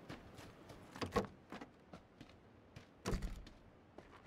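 A door creaks and bangs open.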